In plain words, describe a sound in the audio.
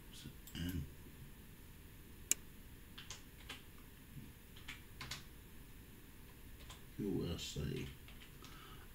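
Keys click on a keyboard in quick, uneven taps.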